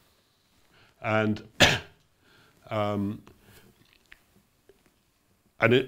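An elderly man speaks calmly through a microphone, pausing between phrases.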